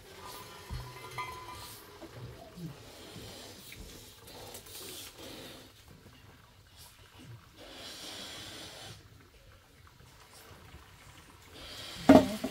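Cooked rice pours from a metal pot into a metal bowl.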